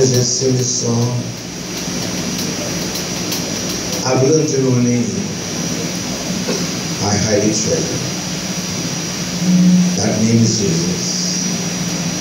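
An elderly man speaks with animation through a microphone and loudspeakers in an echoing room.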